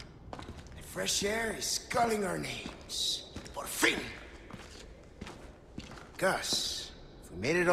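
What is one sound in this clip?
A man speaks calmly and mockingly, close by.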